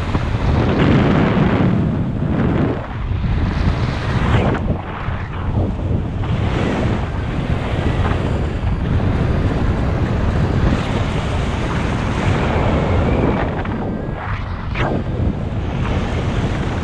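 Wind roars and buffets loudly throughout, as if flying through open air.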